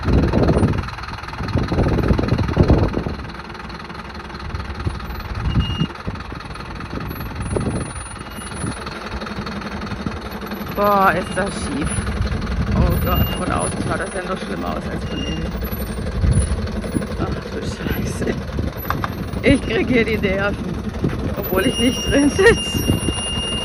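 A truck engine rumbles as the truck creeps down a rough slope.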